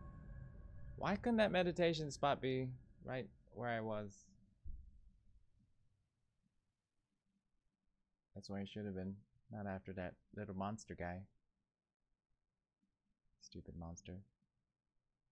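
A young man talks calmly into a close microphone, in short bursts.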